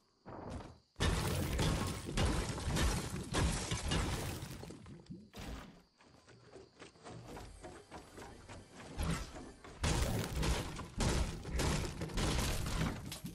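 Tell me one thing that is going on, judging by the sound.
A pickaxe strikes wood again and again with sharp thwacks.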